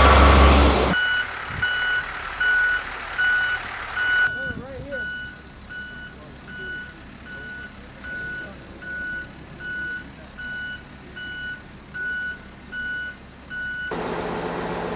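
A reversing truck beeps in a steady, repeating rhythm.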